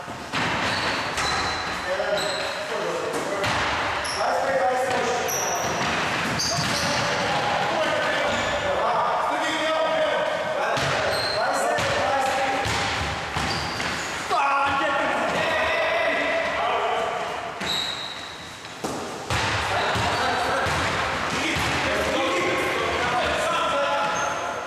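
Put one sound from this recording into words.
A basketball bounces on a wooden floor.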